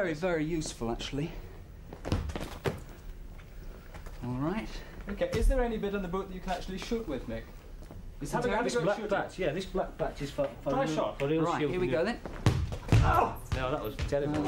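A football thuds as it is kicked across a hard floor.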